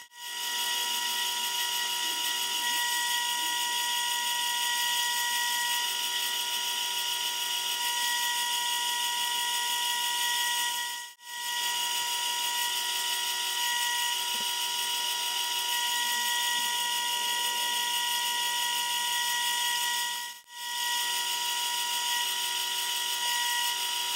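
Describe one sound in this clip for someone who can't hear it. Sandpaper hisses against a spinning workpiece.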